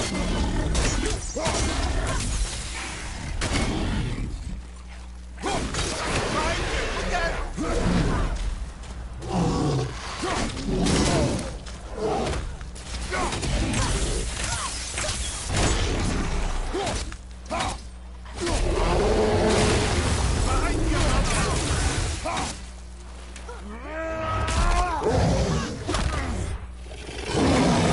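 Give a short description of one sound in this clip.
An axe strikes and slashes with heavy thuds.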